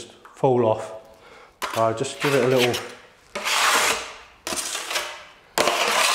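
A trowel scrapes adhesive across a tile.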